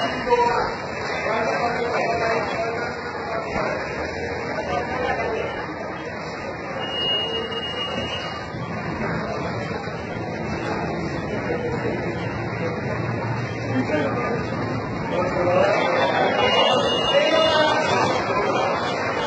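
A crowd of men shout and talk excitedly nearby.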